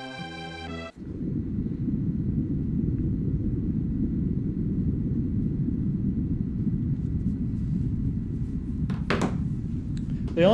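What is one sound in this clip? A deep rumble drones steadily.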